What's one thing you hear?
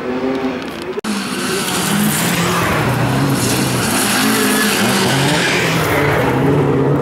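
Tyres skid and spray across loose gravel.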